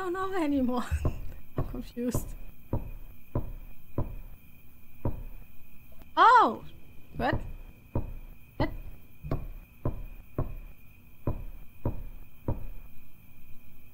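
Footsteps thud at a steady walking pace on a hard floor.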